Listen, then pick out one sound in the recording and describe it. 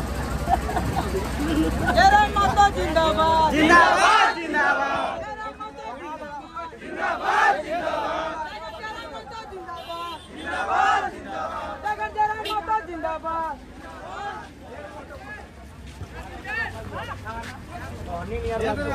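A crowd of men and women talk loudly and excitedly close by.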